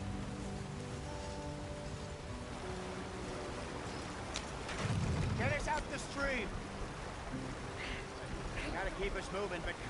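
Water splashes as a wagon crosses a stream.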